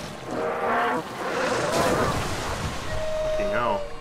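Water splashes loudly as something plunges into it.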